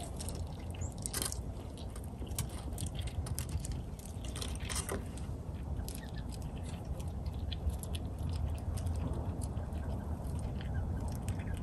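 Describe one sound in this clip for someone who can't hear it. A chipmunk nibbles and cracks seeds in quick little crunches.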